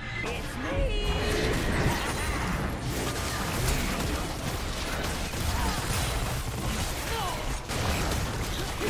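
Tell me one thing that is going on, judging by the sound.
Game combat impacts clash and crackle.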